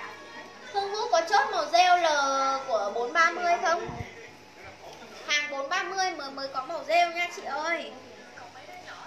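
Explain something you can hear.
A young woman sings close by.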